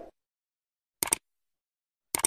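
A mouse click sounds.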